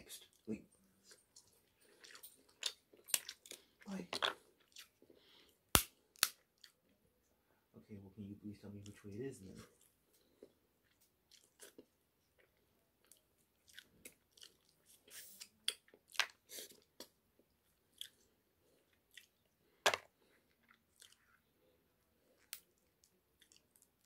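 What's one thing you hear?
A man chews and crunches food close up.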